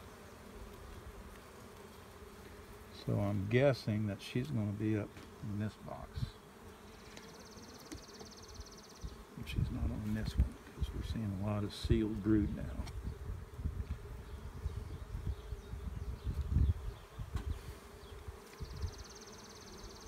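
Bees buzz steadily around an open hive.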